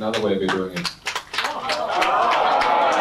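An audience claps briefly.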